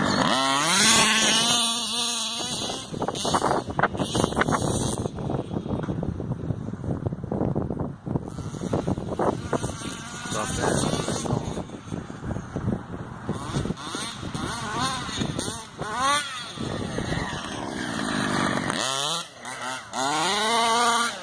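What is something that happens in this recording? A small remote-control car motor whines and revs up and down.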